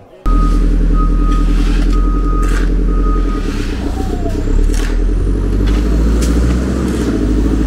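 Shovels scrape into sand.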